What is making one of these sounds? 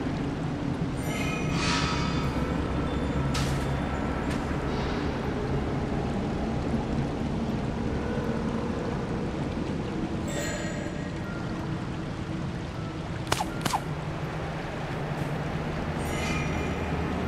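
A bright shimmering chime rings out a few times.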